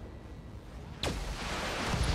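An explosion booms with a sharp crack.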